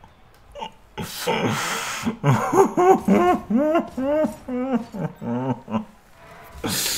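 A man laughs loudly and at length close to a microphone.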